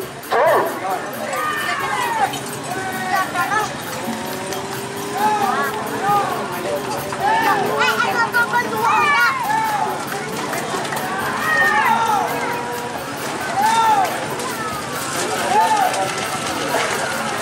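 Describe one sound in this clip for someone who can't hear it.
A large crowd outdoors shouts and cheers.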